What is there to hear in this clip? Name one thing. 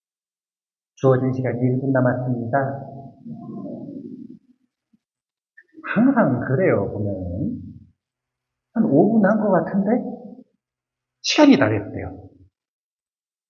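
A man speaks calmly into a microphone, in phrases with pauses.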